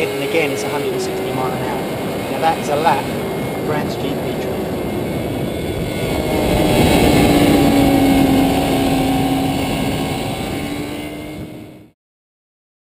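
Wind rushes loudly past a speeding motorcycle.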